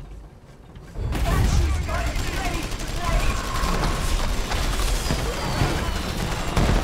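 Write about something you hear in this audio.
Heavy guns fire in a loud, rumbling battle.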